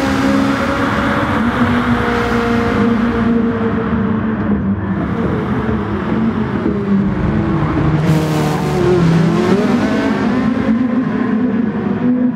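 A race car engine roars at high revs, rising and falling as it shifts gears.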